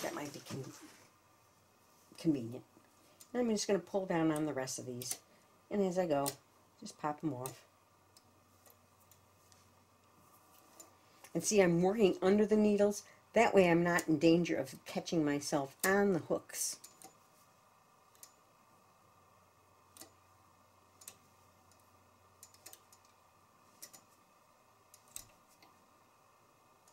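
Metal needles click softly as yarn is hooked onto them.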